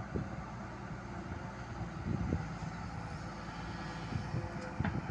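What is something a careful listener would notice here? An excavator's diesel engine rumbles steadily outdoors.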